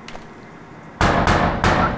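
A fist knocks loudly on a door.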